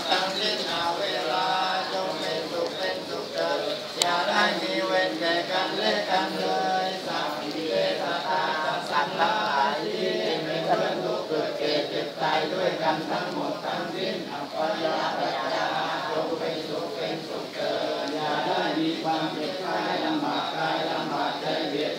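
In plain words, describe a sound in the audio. A group of men and women chant prayers together nearby.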